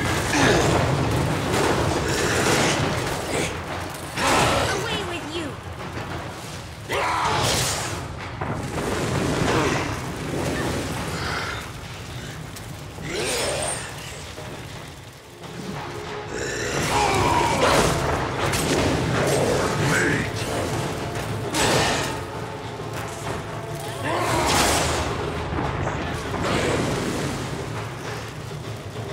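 Flames roar steadily.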